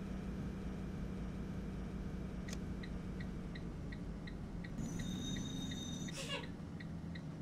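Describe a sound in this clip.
A bus engine hums steadily at low speed.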